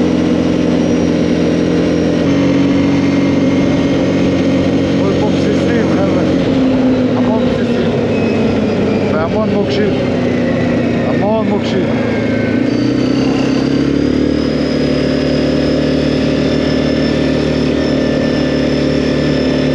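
A quad bike engine hums steadily up close, its pitch shifting as the bike changes speed.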